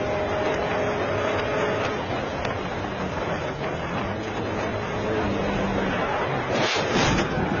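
A car engine roars at speed.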